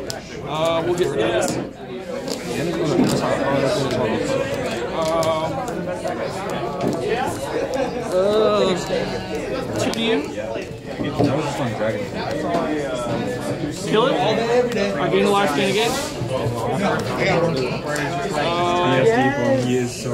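Playing cards slide and tap softly on a table mat.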